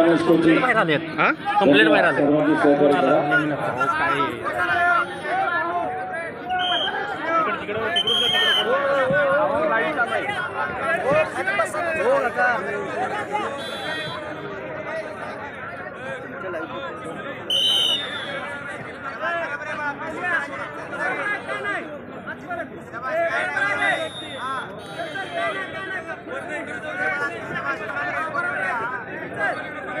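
A large crowd chatters and calls out across an open stadium.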